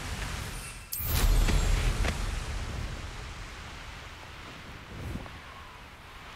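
Wind rushes loudly past as a broom takes off and flies fast, then slowly dies away.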